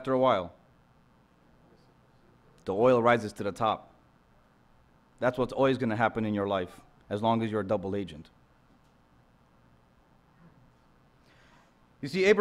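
A young man speaks calmly into a microphone, with pauses between phrases.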